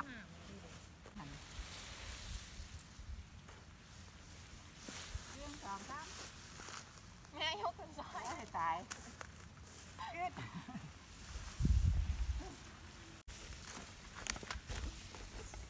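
Grass stalks rustle and swish as they are cut and bundled.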